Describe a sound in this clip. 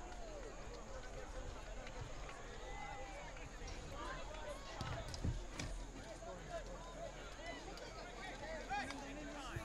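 A crowd of spectators murmurs and chatters at a distance outdoors.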